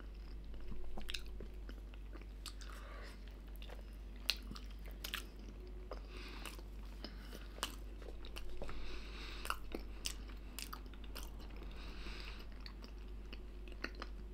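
A young man chews food with his mouth close to a microphone.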